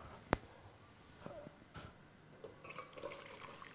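Liquid pours and splashes into a strainer.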